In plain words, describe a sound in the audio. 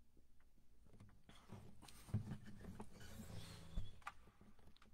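An acoustic guitar is softly strummed.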